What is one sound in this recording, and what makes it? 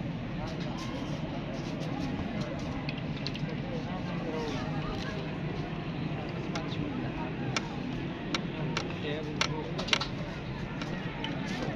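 A crowd of spectators chatters outdoors nearby.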